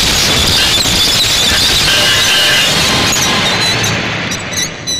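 Heavy metal objects crash and clatter to the ground.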